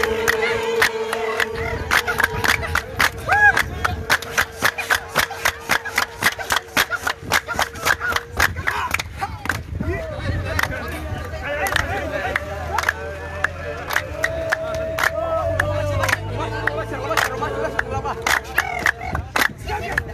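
A group of men and women sing together loudly.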